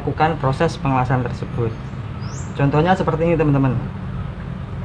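A man talks close by with animation.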